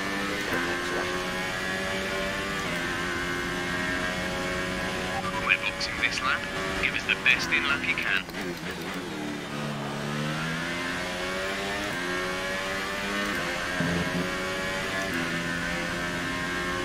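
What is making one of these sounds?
A racing car engine screams at high revs, shifting up through the gears with sudden drops in pitch.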